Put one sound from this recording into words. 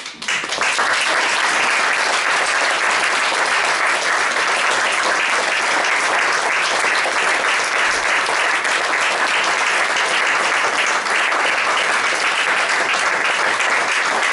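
An audience claps and applauds loudly.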